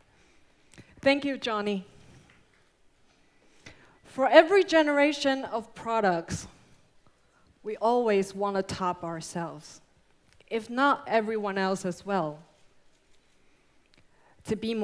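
A young woman speaks calmly into a microphone over loudspeakers in a large hall.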